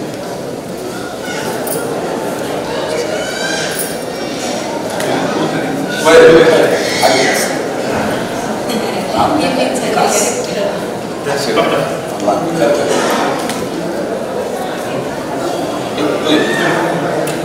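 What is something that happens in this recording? Several adults talk and murmur nearby.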